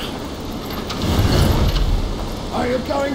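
A man screams in rage.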